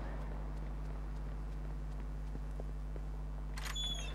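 Footsteps fall on pavement.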